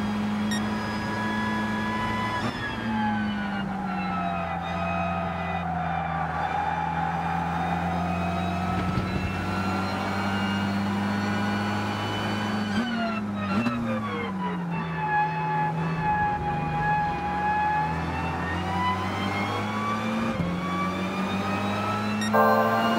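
A racing car engine roars steadily, dropping in pitch as gears shift down and rising again as it speeds up.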